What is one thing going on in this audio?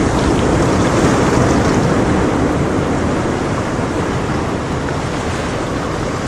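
Air bubbles gurgle and hiss steadily through water.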